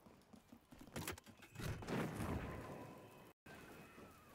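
A magical lock opens with a bright shimmering chime.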